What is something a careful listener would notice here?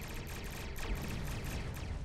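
An explosion booms with a low rumble.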